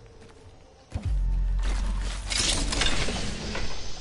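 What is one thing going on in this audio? A heavy metal bin slides open with a loud mechanical rush.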